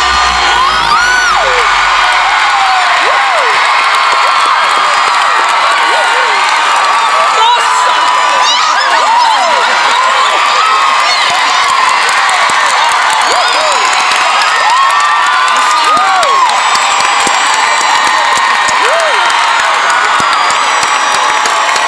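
A large crowd screams and cheers in an open-air stadium.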